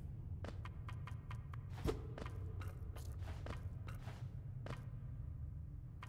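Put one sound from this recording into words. A small sword slashes in quick swishes.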